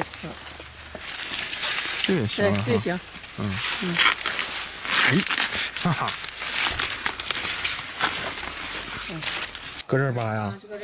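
Corn leaves and husks rustle and crackle as hands handle them.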